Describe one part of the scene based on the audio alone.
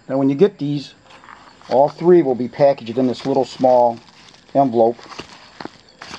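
A padded paper envelope crinkles and rustles as hands open it.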